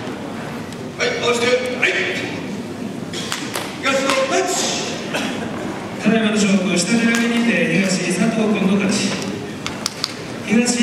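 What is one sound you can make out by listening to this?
An elderly man calls out loudly in a drawn-out chant.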